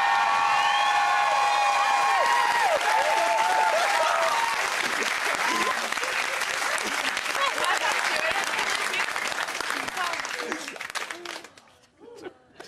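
An audience cheers and applauds loudly in a large hall.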